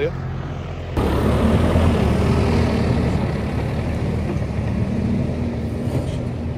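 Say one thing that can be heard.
A tractor engine rumbles loudly and steadily nearby.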